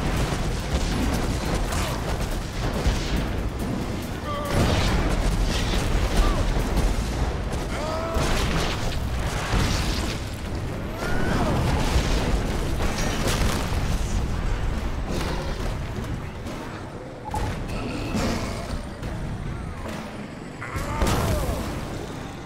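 Monsters growl and screech.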